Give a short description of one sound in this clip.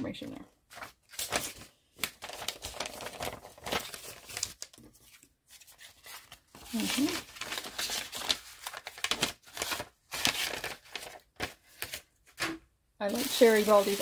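Paper crinkles and rustles as it is handled.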